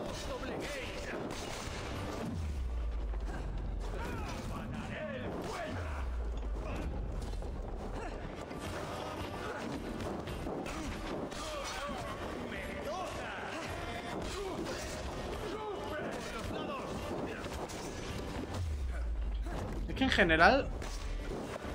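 Swords clash and thud in a fight.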